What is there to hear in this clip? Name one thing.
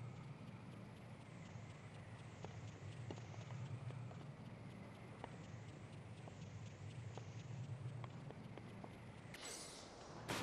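A flying machine hums steadily with a low drone.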